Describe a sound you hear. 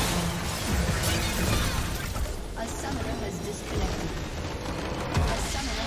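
Spell effects crackle and boom in a game battle.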